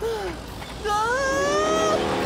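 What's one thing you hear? A man cries out in alarm.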